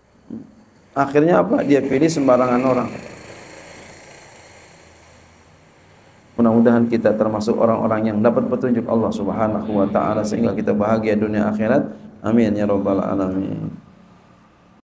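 A middle-aged man speaks calmly into a microphone in a room with a slight echo.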